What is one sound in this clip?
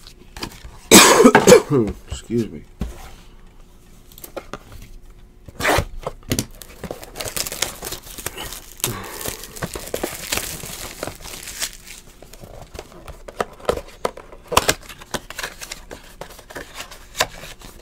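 Cardboard packs rustle and scrape against each other.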